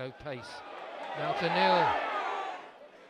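A stadium crowd roars as a shot nears the goal.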